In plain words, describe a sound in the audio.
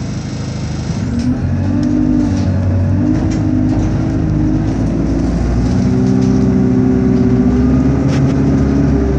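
A bus engine revs up, rising in pitch as the bus speeds up.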